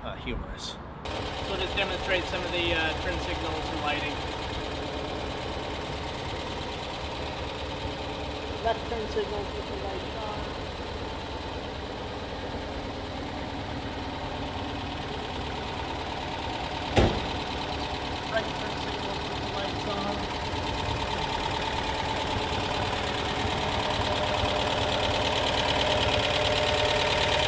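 A small car engine idles with a steady hum.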